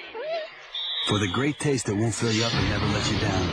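A woman speaks sharply, close by.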